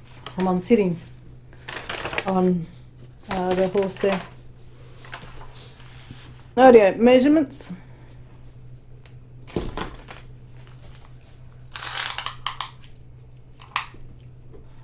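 Plastic film crinkles and rustles under a hand.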